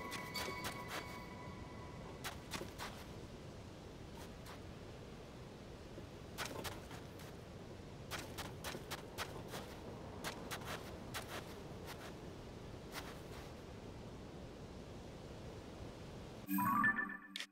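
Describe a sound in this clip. Footsteps crunch and shuffle through soft sand.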